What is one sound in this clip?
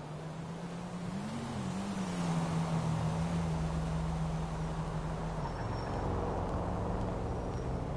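A car engine hums and revs as a car drives past.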